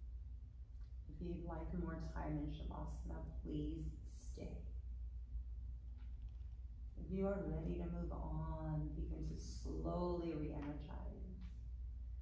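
A woman speaks calmly, giving instructions.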